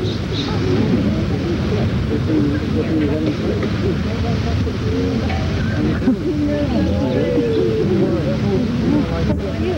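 A crowd of men and women talk and murmur all at once nearby.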